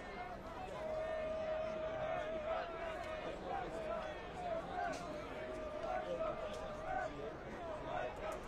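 A crowd of spectators murmurs and cheers steadily in an outdoor stadium.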